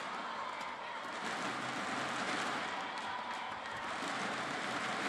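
A large crowd murmurs and cheers steadily in a big echoing hall.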